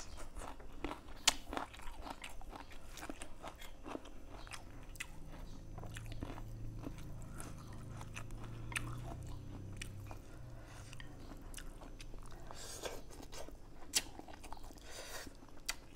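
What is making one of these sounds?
Chopsticks click against a plate.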